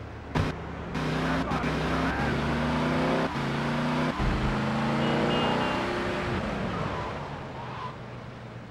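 A car engine revs and roars as a car speeds along.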